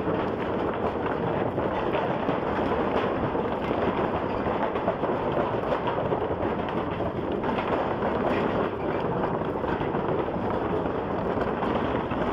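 Loose wooden planks rattle and clatter under tyres.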